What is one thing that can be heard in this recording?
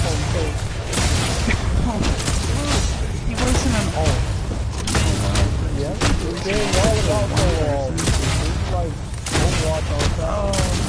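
Video game explosions boom and crackle.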